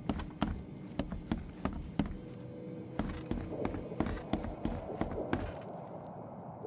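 Footsteps thud on wooden floorboards and stairs.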